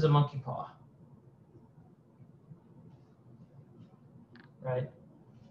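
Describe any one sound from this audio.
A man speaks calmly into a nearby microphone, in short phrases.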